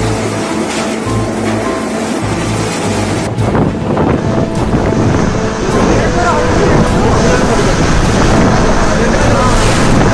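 Strong wind roars and gusts.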